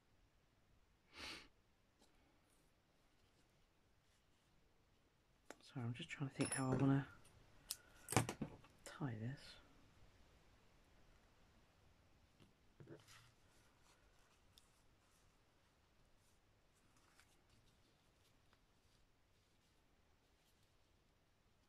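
Thread rustles softly as it is pulled through paper and fabric.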